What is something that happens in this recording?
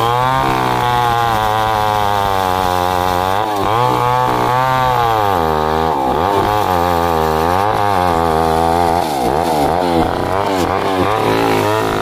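A chainsaw engine roars loudly and its pitch rises and falls as it cuts through a log.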